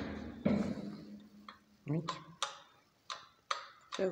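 An elevator call button clicks as it is pressed.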